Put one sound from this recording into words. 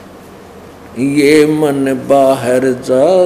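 A middle-aged man reads out calmly into a microphone.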